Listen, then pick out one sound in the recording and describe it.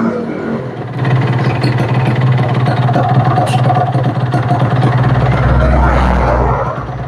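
A motorcycle engine idles with a steady, close putter.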